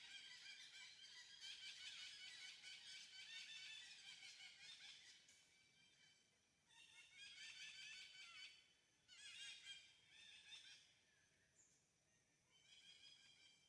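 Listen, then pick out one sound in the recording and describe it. A small monkey pads softly across dry leaves.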